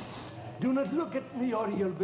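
An elderly man speaks.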